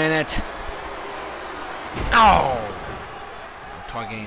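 A body slams onto a wrestling mat with a heavy thud.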